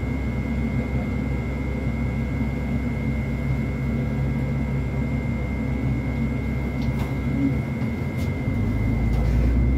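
A bus engine idles with a low, steady rumble that grows louder near the end.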